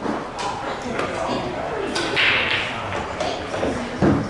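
Billiard balls clack together and roll across the table.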